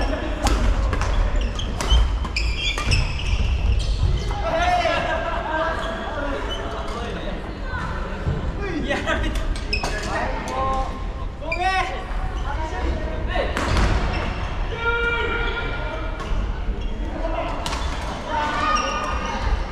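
Players' shoes squeak on a wooden floor.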